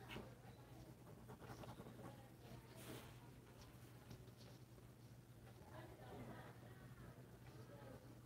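Charcoal scratches softly across paper.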